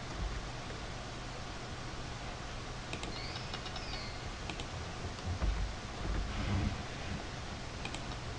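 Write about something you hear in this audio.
Computer keys click as someone types.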